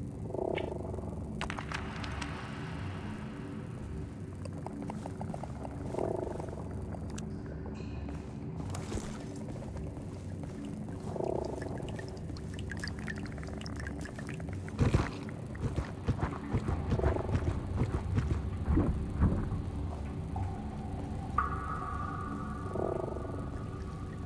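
A handheld scanner gives a short electronic pulse every few seconds.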